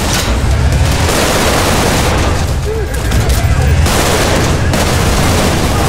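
Energy blasts whoosh and roar past.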